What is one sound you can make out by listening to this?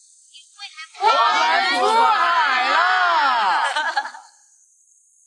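A group of men and women shout and cheer together.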